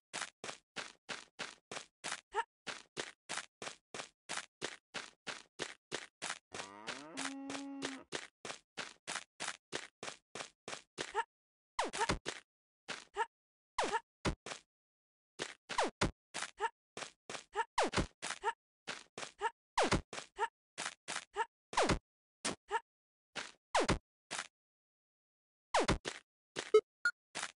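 Footsteps tread in a rapid, even series.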